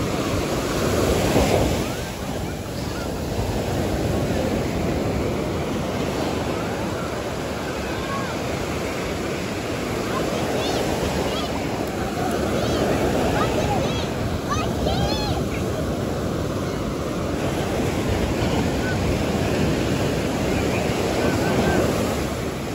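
Waves wash and break steadily along the shore.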